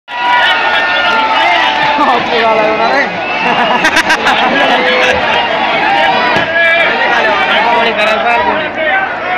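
A large crowd of young men cheers and shouts loudly outdoors.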